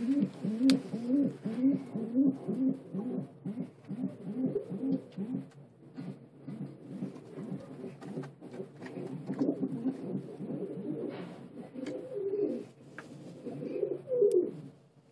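Pigeons coo in low, throaty, repeated calls close by.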